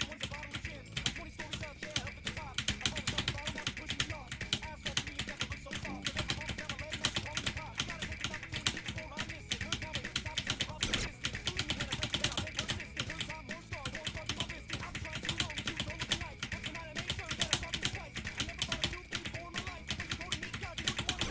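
Keyboard keys click rapidly and steadily.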